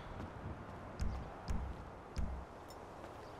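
Menu beeps click in quick succession.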